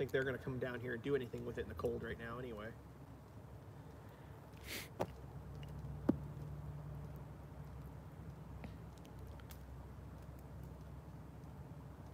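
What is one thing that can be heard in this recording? A wood fire crackles and pops in a metal barrel outdoors.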